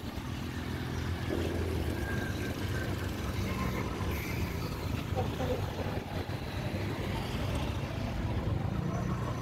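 A motorbike engine hums steadily while riding in traffic.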